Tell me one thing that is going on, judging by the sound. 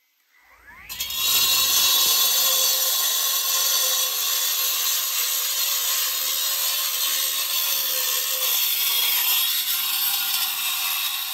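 A petrol cut-off saw screams loudly as it grinds into concrete.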